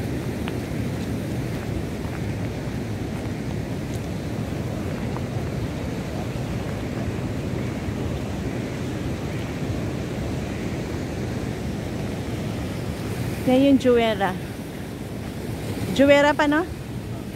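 Sea waves wash and crash against the shore.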